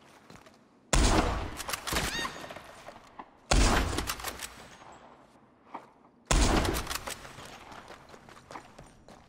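A rifle fires loud shots that echo and fade.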